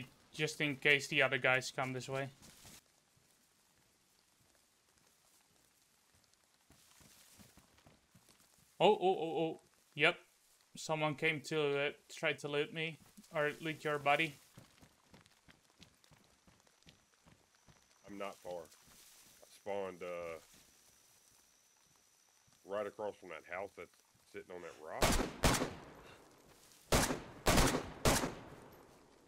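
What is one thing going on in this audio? Footsteps rustle through grass and brush.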